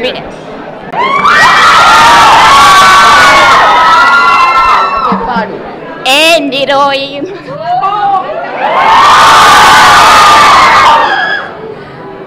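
A large crowd of young people screams and cheers loudly.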